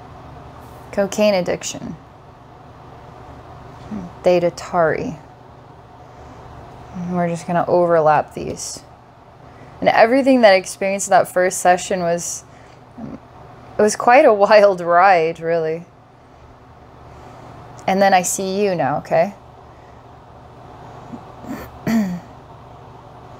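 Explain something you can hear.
A woman speaks slowly and calmly into a close microphone, with long pauses.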